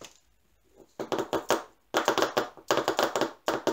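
Tiny beads rattle inside plastic containers.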